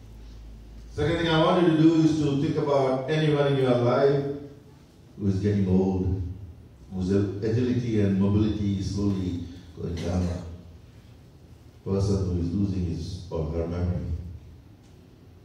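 A middle-aged man speaks slowly and solemnly into a microphone, heard through loudspeakers in an echoing hall.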